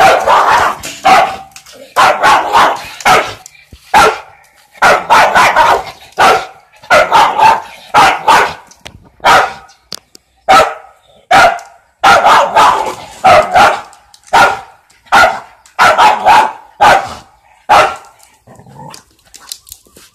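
A rooster squawks.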